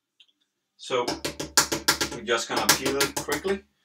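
An egg cracks against the rim of a bowl.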